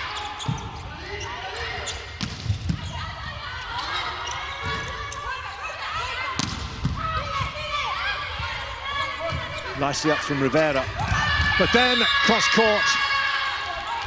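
A volleyball is struck hard several times.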